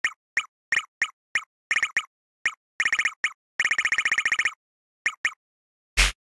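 Short electronic menu beeps tick quickly as a cursor scrolls through a list.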